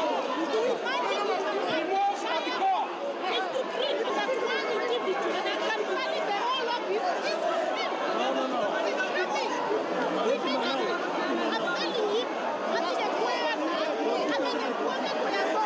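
A woman argues loudly with a man.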